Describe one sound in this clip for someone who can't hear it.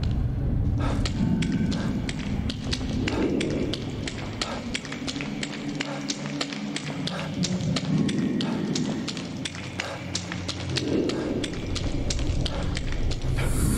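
Footsteps walk at a steady pace.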